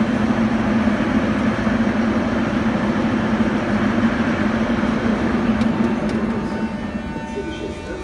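Footsteps of passers-by tap on a hard stone floor.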